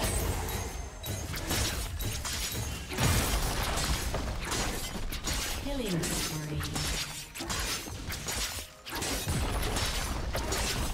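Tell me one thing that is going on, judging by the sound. Fantasy battle sound effects clash and burst with magic blasts.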